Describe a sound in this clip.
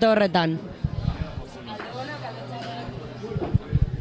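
A young man speaks into a microphone up close.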